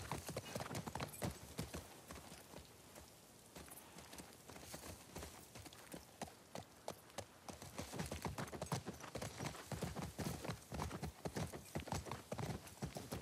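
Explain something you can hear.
A horse's hooves clop on asphalt.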